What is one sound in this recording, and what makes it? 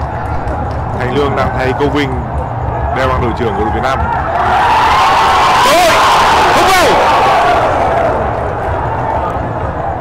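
A large stadium crowd roars, swelling loudly and then easing off.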